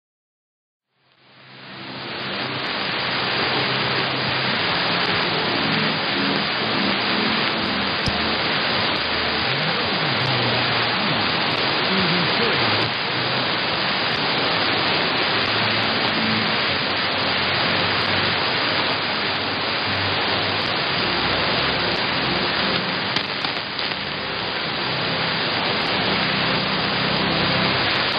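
Loud radio static hisses steadily from a receiver, starting suddenly and then holding steady.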